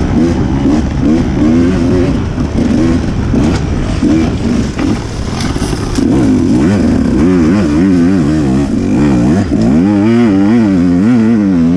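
Tyres crunch over rocks and leaves.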